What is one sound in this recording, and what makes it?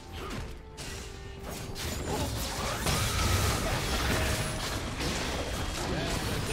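Spell effects whoosh and crackle in a game fight.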